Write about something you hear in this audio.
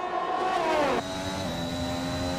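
A racing car engine drones steadily from close by.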